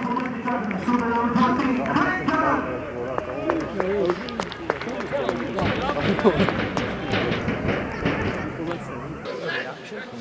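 Young men shout and cheer in celebration outdoors.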